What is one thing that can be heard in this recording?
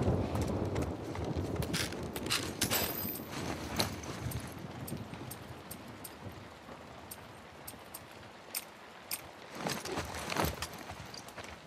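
Items rattle as they are picked up from shelves.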